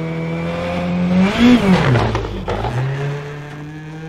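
Tyres skid and scrabble on loose gravel.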